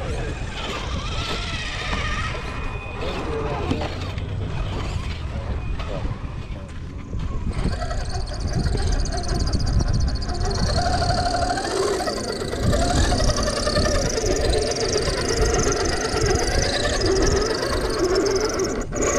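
A small electric motor whines as a toy truck climbs over rocks.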